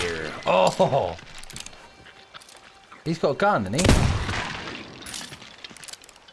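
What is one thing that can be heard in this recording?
A pistol is reloaded with metal clicks.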